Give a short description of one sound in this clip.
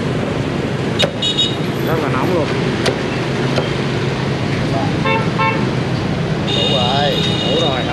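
A knife chops through crackling roast pork with sharp knocks.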